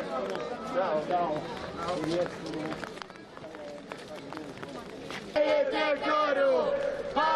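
A crowd of marchers chants loudly outdoors.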